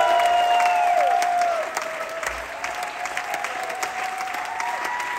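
A drummer taps out a brisk beat on cymbals and drums.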